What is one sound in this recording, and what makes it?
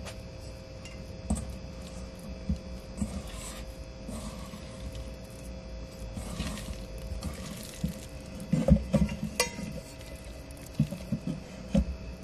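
Hands knead and squish soft dough in a metal bowl.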